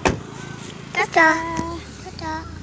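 A young girl speaks brightly close by.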